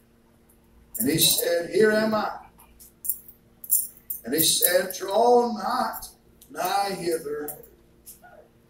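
A middle-aged man speaks calmly into a microphone, in short phrases with pauses, in a room with slight echo.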